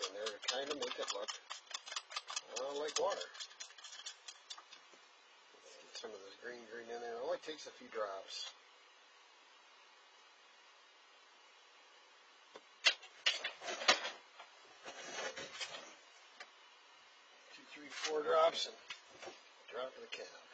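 Small parts click and clink as hands handle them.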